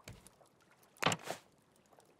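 A hammer knocks on wood.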